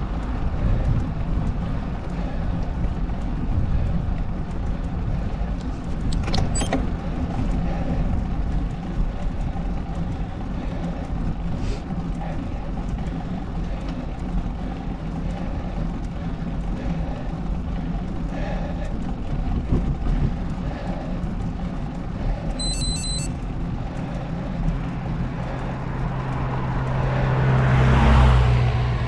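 Wind rumbles and buffets steadily outdoors.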